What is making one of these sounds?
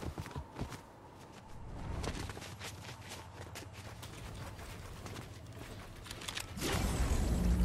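Footsteps run quickly over snow and ground.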